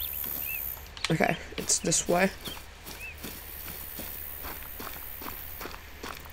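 Footsteps rustle through tall grass and brush.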